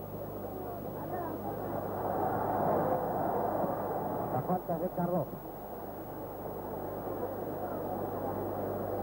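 A large crowd roars and murmurs in an open stadium, swelling and easing off.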